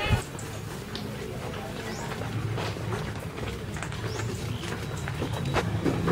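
Young people walk with soft footsteps.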